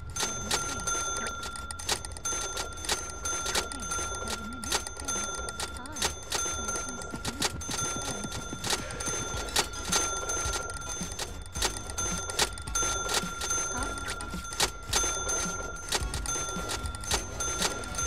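A checkout scanner beeps again and again.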